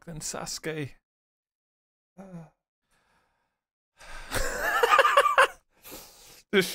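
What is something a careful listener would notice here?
A man laughs loudly and excitedly.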